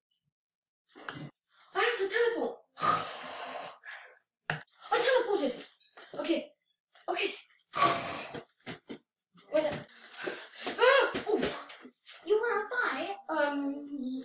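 A young boy talks loudly and excitedly close by.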